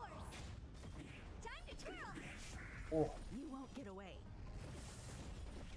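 Magic blasts and heavy impacts crash in quick bursts.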